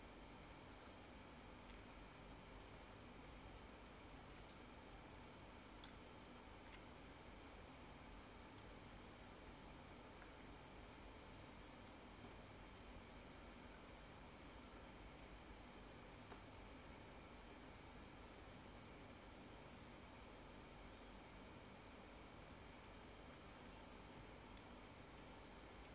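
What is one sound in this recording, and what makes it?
Fingertips tap and slide softly on a touchscreen.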